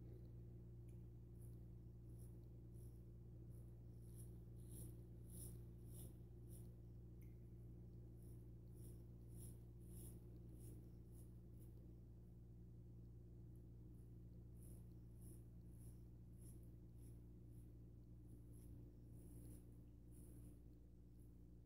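A razor blade scrapes against stubble in short, crisp strokes.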